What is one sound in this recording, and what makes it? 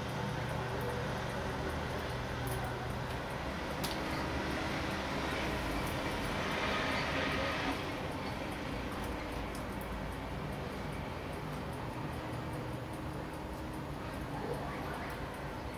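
Fingers lightly click and scrape against a small metal watch mechanism.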